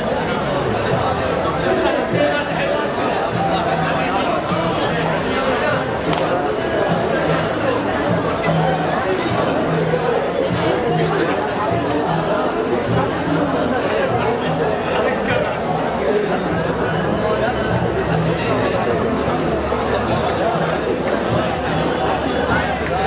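A crowd of men and women chatter all around, outdoors.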